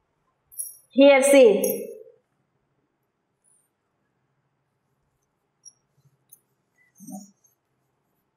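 A woman speaks clearly.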